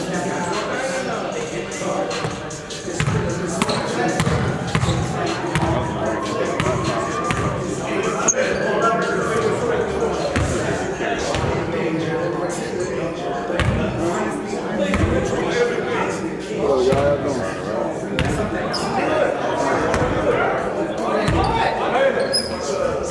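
Young men talk and call out across the gym.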